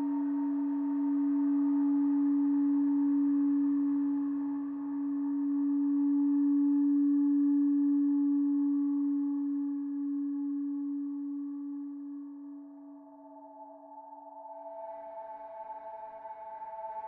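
A synthesizer plays shimmering higher tones that swell again near the end.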